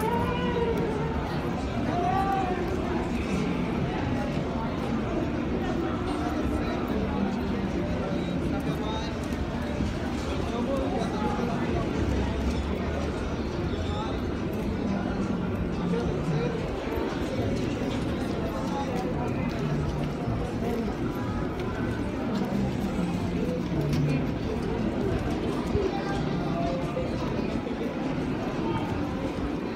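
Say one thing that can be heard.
A crowd chatters in a busy outdoor street.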